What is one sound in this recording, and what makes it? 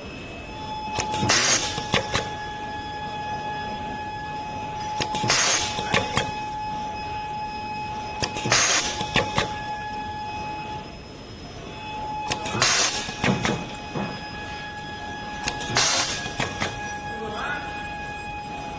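A machine clacks and hisses with air in repeated bursts.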